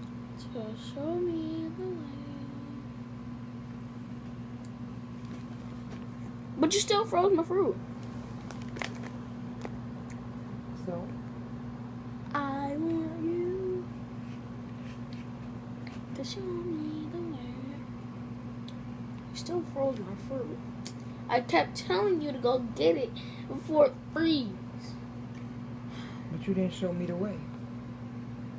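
A woman sings into a microphone, heard through a television loudspeaker.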